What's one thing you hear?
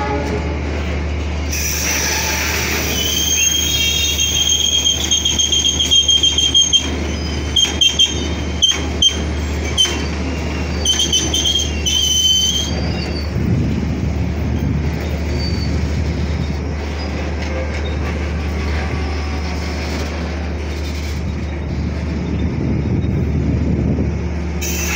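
A long freight train rolls past close by with a steady heavy rumble.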